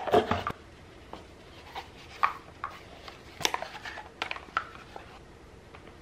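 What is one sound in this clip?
A small paper box is handled with light taps and rustles.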